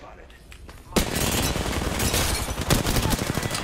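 Gunshots fire rapidly and loudly.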